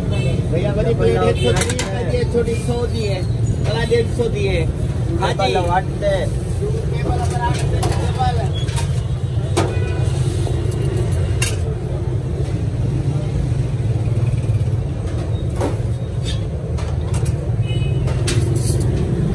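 Spoons clink against metal plates.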